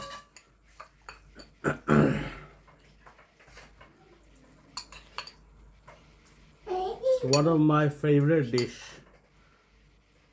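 A spoon clinks and scrapes against a bowl.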